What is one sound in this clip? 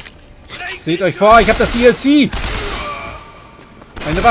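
A gun fires shots in rapid bursts.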